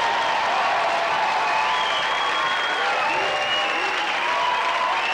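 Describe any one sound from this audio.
A live band with strings plays music on a large, echoing stage.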